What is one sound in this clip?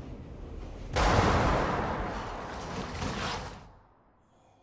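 A heavy metal door bursts open with a loud, harsh rush of noise.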